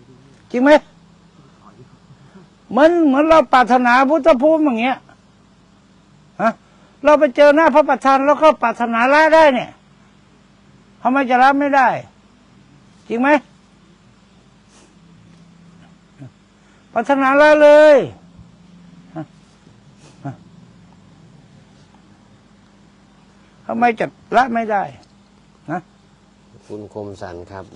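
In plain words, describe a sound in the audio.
A middle-aged man speaks calmly and slowly into a microphone, with long pauses.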